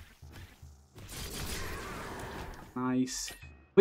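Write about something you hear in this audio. A game laser beam blasts with a loud rushing hiss.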